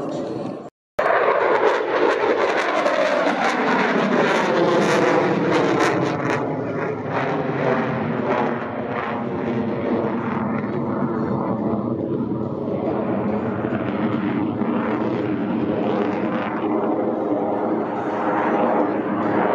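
A jet engine roars loudly overhead, its pitch slowly sliding as the plane passes.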